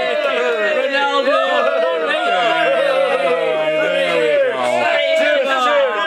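Several older women sing together cheerfully, close by.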